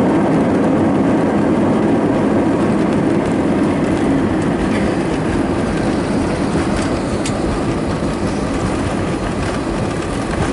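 An airliner's cabin rumbles and rattles as the airliner rolls along the runway.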